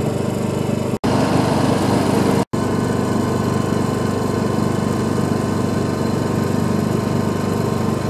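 A motorboat engine drones as it speeds past.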